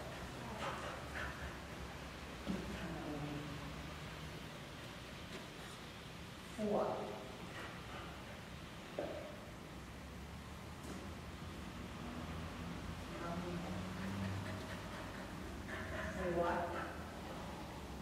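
A woman speaks to a dog with animation.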